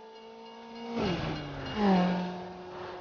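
A race car engine drops in pitch as it shifts gear, then climbs again.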